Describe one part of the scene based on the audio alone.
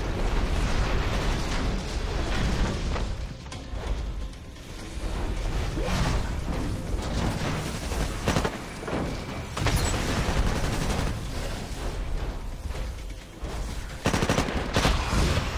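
Rapid gunfire rattles and booms in bursts.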